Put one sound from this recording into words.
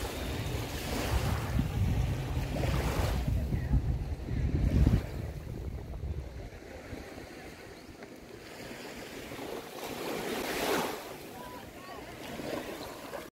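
Gentle waves lap softly at the shore.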